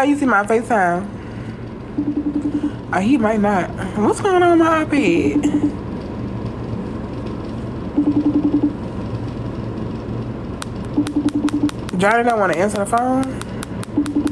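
A young woman talks with animation, close to a phone microphone.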